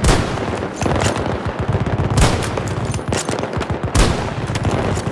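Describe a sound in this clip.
Gunshots crack and echo in a battle.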